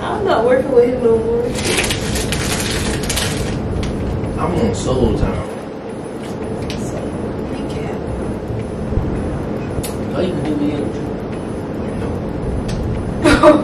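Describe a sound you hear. Young men talk and laugh together in a room.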